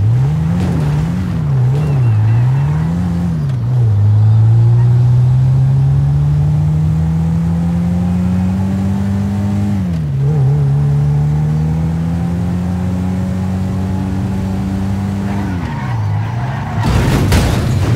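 A car engine revs up and down, then rises steadily as the car speeds up.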